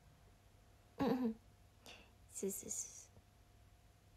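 A young woman speaks softly in short bursts close to a microphone.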